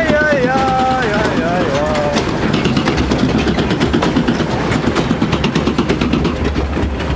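Water splashes and sloshes around a ride boat.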